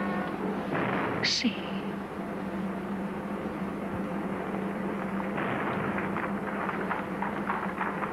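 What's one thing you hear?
A woman speaks softly and closely.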